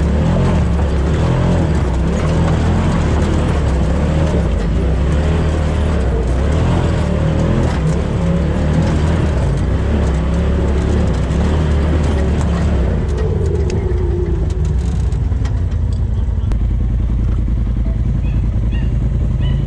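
An off-road vehicle's engine rumbles and revs up close.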